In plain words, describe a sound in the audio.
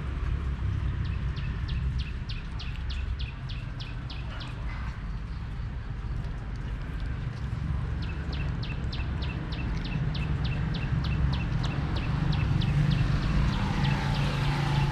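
A young monkey chews and munches on a fruit.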